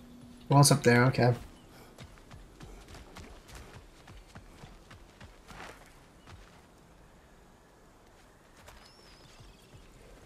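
Heavy footsteps crunch over grass and dirt.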